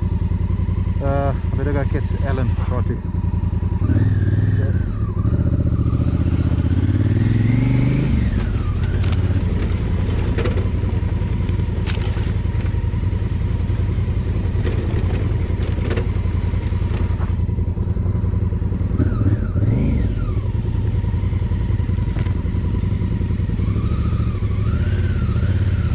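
A motorcycle engine rumbles and revs up and down.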